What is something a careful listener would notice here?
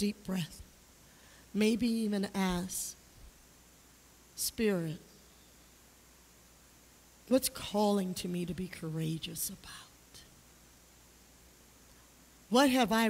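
A woman speaks with animation into a microphone in a large echoing hall.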